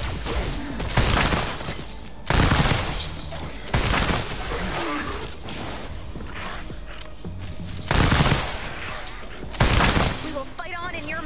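Guns fire in loud bursts with booming blasts.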